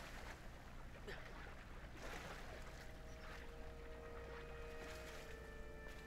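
Water splashes as a figure swims.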